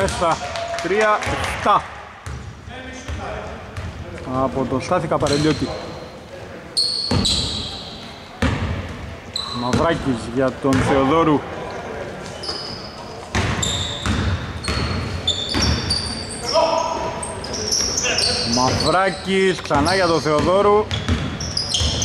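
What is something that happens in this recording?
A man calls out loudly in a large echoing hall.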